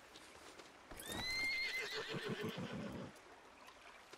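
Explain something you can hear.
A horse whinnies nearby.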